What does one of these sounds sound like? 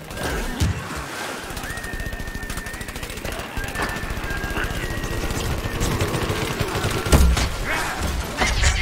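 A pogo spring thumps rapidly as a character bounces along.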